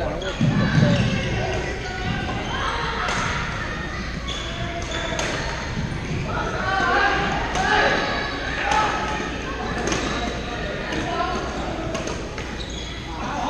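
Many players and onlookers chatter and call out nearby.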